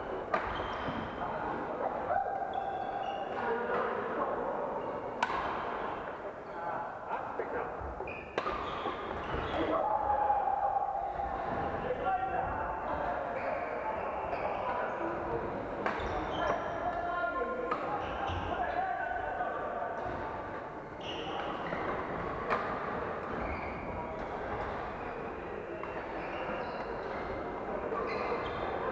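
Shuttlecocks are hit with sharp pops of rackets in a large echoing hall.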